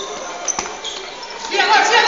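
A ball thuds as a player kicks it.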